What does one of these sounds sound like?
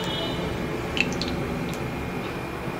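A metal spoon clinks against a pan.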